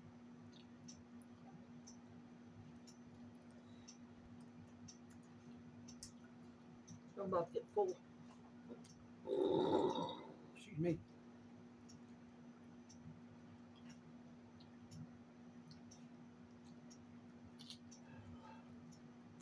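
A middle-aged woman chews food nearby.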